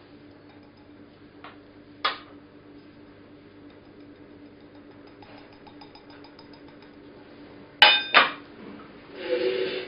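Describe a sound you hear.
Metal lids clink and scrape against each other.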